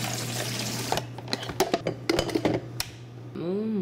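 A glass coffee pot knocks and clicks into place.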